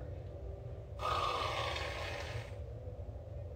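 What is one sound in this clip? Whipped cream sprays from a can with a loud hiss.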